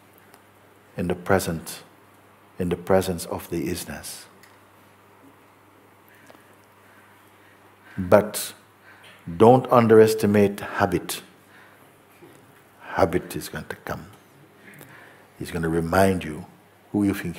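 An elderly man speaks calmly and thoughtfully, close to a microphone, with long pauses.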